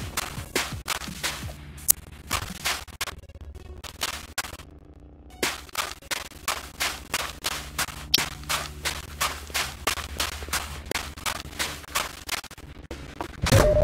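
Footsteps thud quickly on a hard surface.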